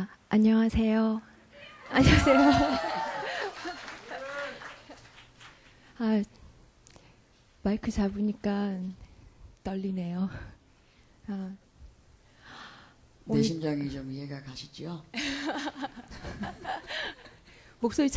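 A young woman speaks cheerfully into a microphone over loudspeakers.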